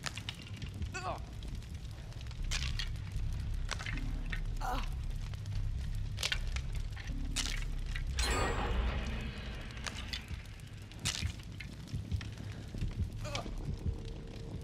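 A woman grunts and gasps.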